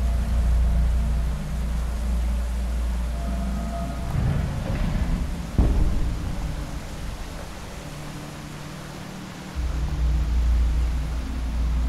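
Water laps gently against a small wooden boat.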